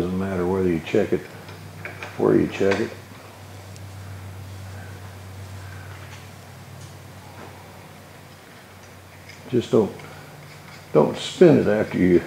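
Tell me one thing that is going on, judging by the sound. Small metal parts click softly as they are fitted together.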